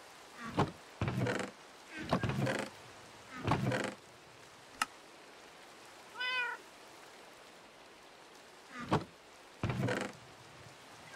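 A wooden chest creaks open and thuds shut several times.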